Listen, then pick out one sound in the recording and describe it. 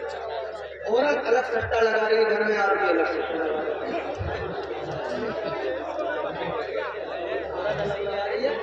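A man speaks with animation through a microphone and loudspeakers.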